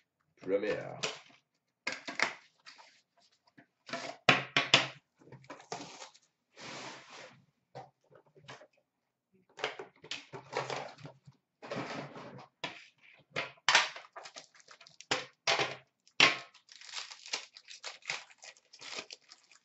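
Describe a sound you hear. Plastic card packs rustle and crinkle in hands.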